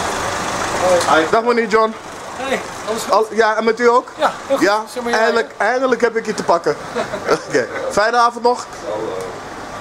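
A middle-aged man talks cheerfully close to the microphone.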